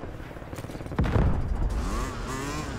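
A motorcycle engine starts up with a low thump.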